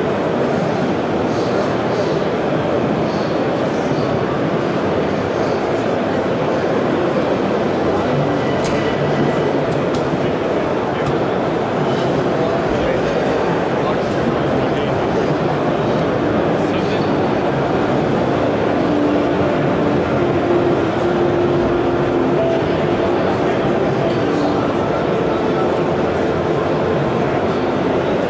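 A crowd of people murmurs and chatters in a large echoing hall.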